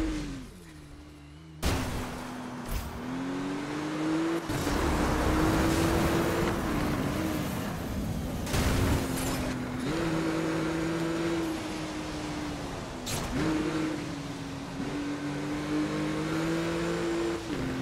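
Tyres rumble and hiss on the road at speed.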